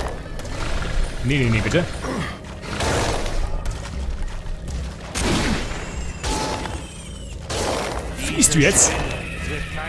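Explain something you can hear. Weapons strike in a fight with a large creature.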